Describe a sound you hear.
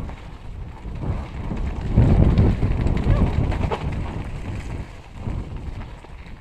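Bicycle tyres rumble and crunch over a rough dirt trail.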